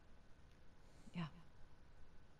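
A young woman answers briefly and quietly.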